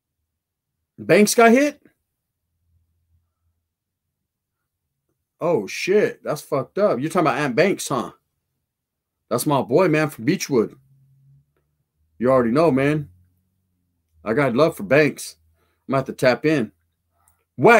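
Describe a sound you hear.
A middle-aged man talks into a close microphone with animation, in short bursts with pauses.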